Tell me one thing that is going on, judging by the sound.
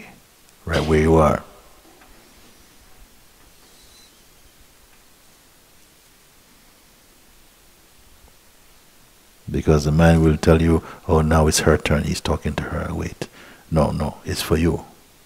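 An elderly man speaks calmly and slowly into a nearby microphone, with long pauses.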